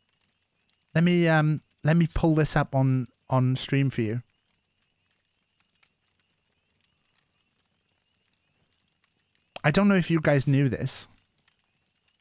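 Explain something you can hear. A middle-aged man talks casually into a close microphone.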